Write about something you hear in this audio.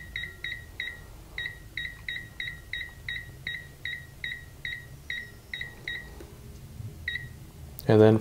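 An electronic device beeps in short, quick, high beeps as buttons are pressed.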